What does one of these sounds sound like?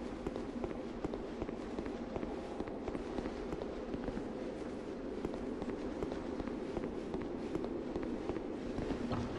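Armoured footsteps clank steadily on a stone floor.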